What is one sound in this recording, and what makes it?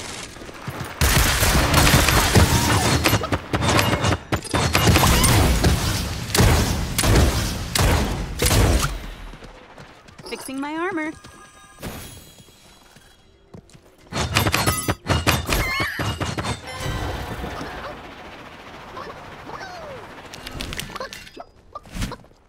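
Gunshots crack in rapid bursts close by.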